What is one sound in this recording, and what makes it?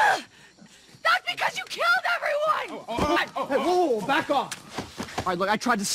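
A young woman shouts angrily, close by.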